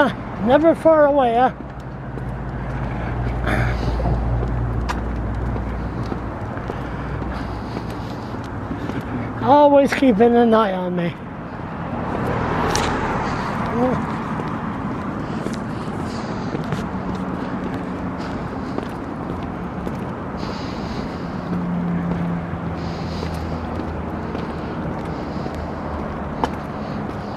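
Traffic hums steadily on a nearby highway.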